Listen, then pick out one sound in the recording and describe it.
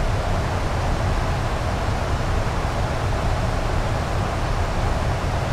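Steady engine and air noise drones.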